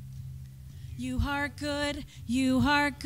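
Two women sing together through a microphone.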